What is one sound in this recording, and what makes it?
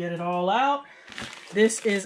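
A small plastic packet crinkles under a hand.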